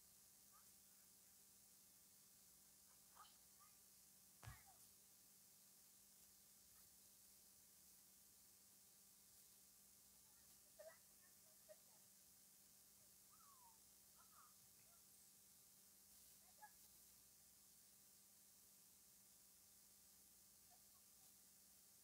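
A small crowd talks quietly outdoors, with occasional brief voices.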